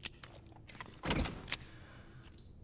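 A pistol magazine clicks into place.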